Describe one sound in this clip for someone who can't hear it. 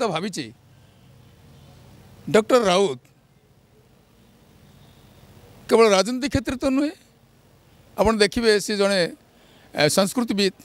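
A middle-aged man speaks into a microphone with animation, in short bursts with pauses.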